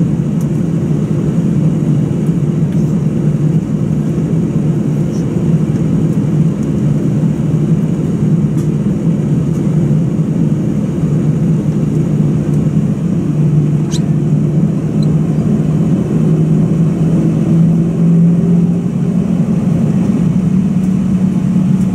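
Jet engines hum steadily and loudly from inside an aircraft cabin.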